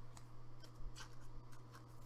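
A plastic wrapper crinkles.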